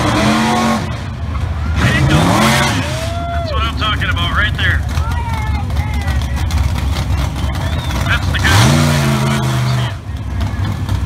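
A race car's engine revs up in loud, roaring bursts.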